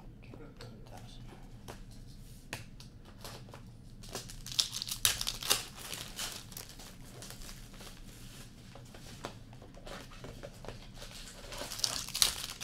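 Trading cards rustle and flick as they are sorted by hand.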